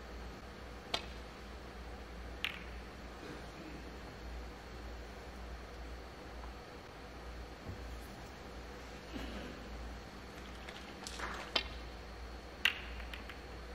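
Snooker balls click sharply against each other on a table.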